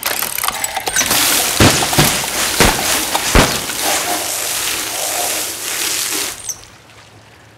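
Water hisses from a hose into a tank.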